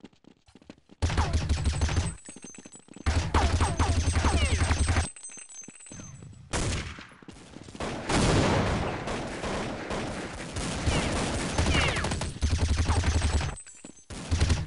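A rifle fires rapid bursts of shots up close.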